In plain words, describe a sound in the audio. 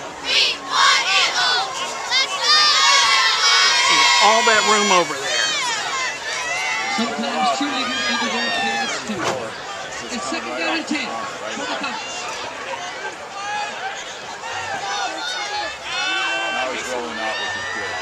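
Players shout to one another on the field nearby.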